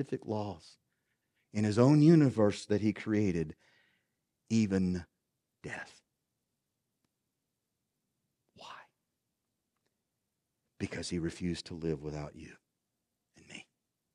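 A middle-aged man speaks with emphasis into a microphone, pausing often.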